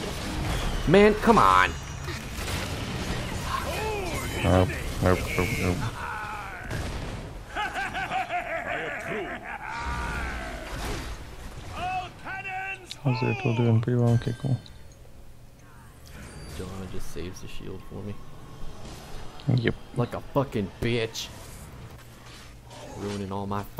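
Fantasy weapons clash and magic bursts crackle in a fast fight.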